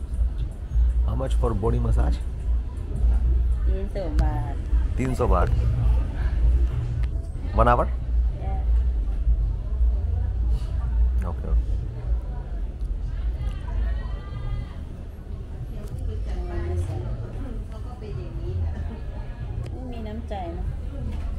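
A woman talks casually close by.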